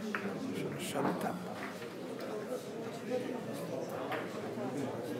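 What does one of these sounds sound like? Billiard balls click against each other.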